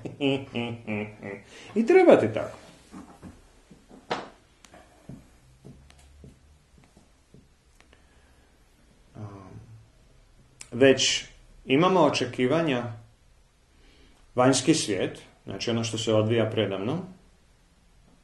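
A man speaks calmly and thoughtfully close by, with pauses.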